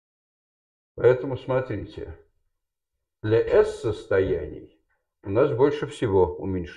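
A man speaks nearby, explaining calmly in short bursts.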